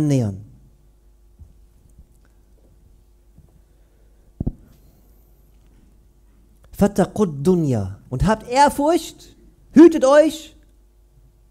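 A man speaks with emphasis into a microphone, pausing between phrases.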